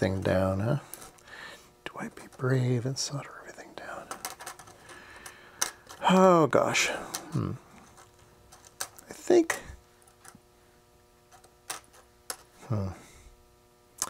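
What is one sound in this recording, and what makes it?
Small electronic parts click and tap onto a circuit board.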